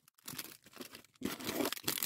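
Cardboard box flaps scrape and thump.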